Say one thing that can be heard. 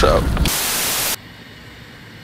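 Loud static hiss crackles briefly.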